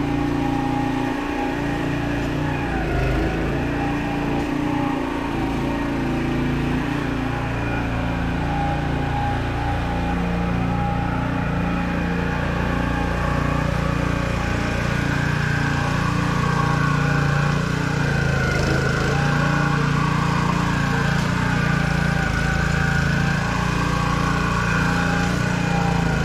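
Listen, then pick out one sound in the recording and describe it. A riding lawn mower engine drones steadily nearby outdoors.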